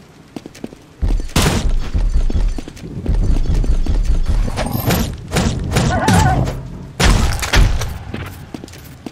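Heavy blows thud and crunch in a fight.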